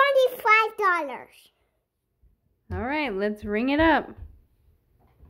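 A young girl talks in a high, lively voice close by.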